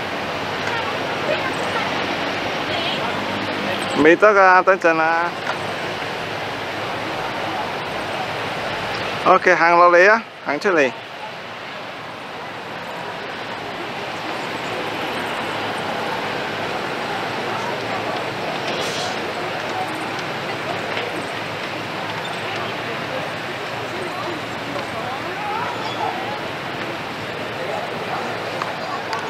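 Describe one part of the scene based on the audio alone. Visitors talk and murmur at a distance outdoors.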